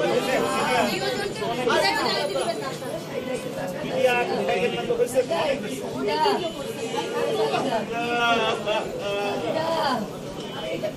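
A crowd of men talks and calls out all at once nearby, outdoors.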